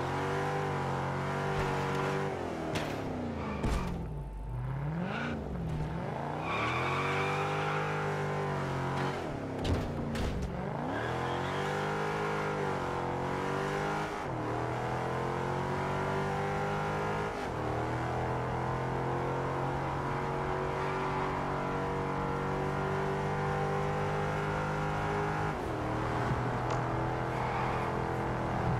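A car engine drops low as the car slows, then revs hard and climbs through the gears.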